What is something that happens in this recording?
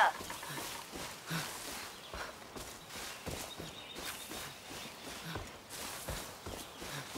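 Footsteps rustle steadily through tall grass.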